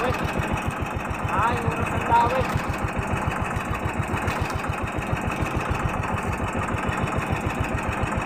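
A boat engine chugs rapidly and steadily.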